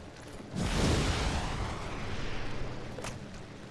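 A fiery explosion bursts with a loud roar and slowly fades.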